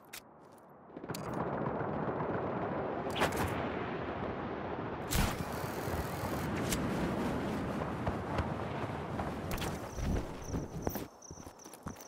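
Wind rushes loudly past a figure gliding fast through the air.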